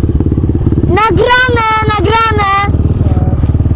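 Another quad bike engine revs sharply up and down close by.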